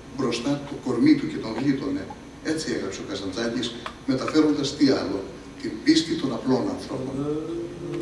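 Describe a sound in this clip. A man speaks into a microphone, heard through loudspeakers in a large hall.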